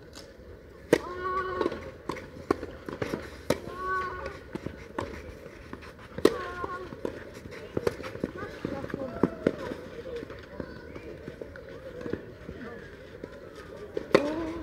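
Young players grunt and shout briefly as they hit the ball.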